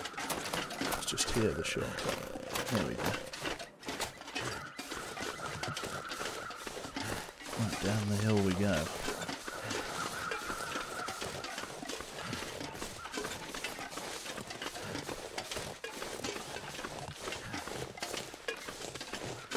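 Footsteps crunch through deep snow.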